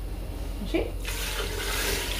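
Water pours into a pot of vegetables with a splashing sound.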